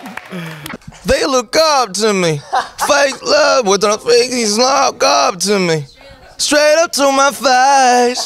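Several young men talk and laugh excitedly, heard through a microphone.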